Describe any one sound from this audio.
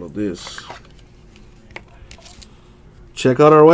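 A card slides out of a stiff plastic sleeve with a soft scrape.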